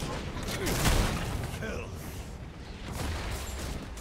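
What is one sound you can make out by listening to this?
Fiery spell blasts crackle and boom in quick bursts.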